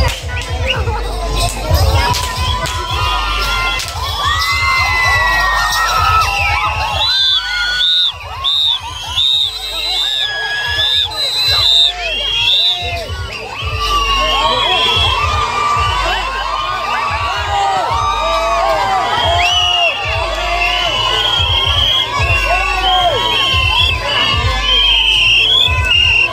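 A crowd of young men and boys shouts and cheers outdoors.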